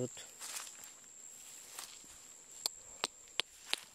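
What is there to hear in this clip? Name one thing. Footsteps rustle through dry grass and weeds close by.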